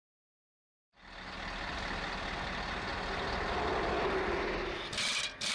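A heavy truck engine idles.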